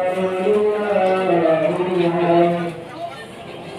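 A man chants loudly in a long, drawn-out voice nearby.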